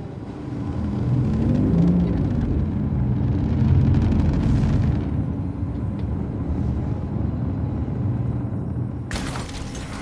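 A spacecraft's engines hum with a low, steady rumble.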